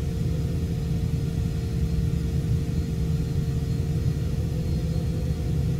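A jet engine hums steadily with a deep rumble, heard from inside an aircraft cabin.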